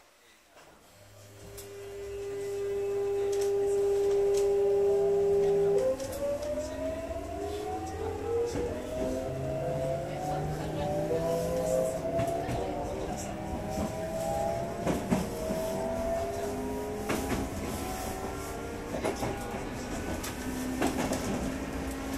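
A train's electric motors hum and whine, rising in pitch as it pulls away.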